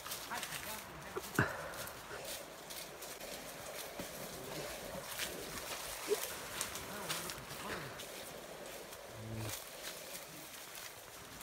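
Footsteps crunch and rustle on dry leaves and twigs.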